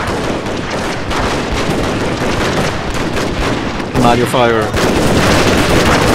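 Muskets crackle and gunfire rumbles in a distant battle.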